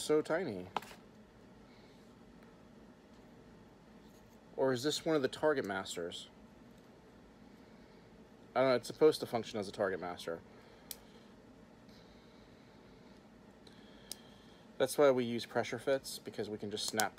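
Small plastic parts click as a man handles a toy.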